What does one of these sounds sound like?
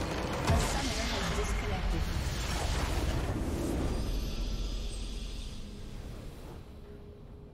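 A loud magical explosion bursts and rumbles.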